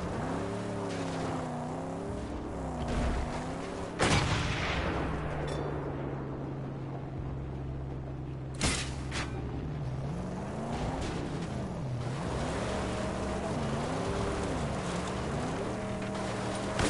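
Tyres skid and scrape over sand and gravel.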